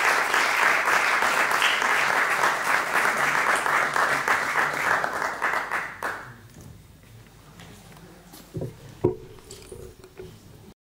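A young man speaks through a microphone in an echoing hall.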